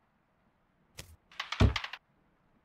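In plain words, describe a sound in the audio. A door swings open with a creak.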